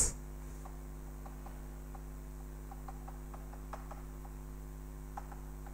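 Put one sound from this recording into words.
Chalk taps and scrapes softly on a blackboard.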